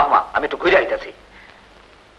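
An elderly man speaks loudly and urgently nearby.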